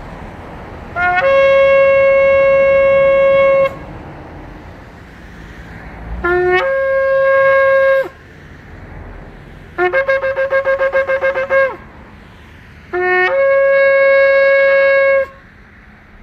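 A horn is blown in long, loud, steady blasts.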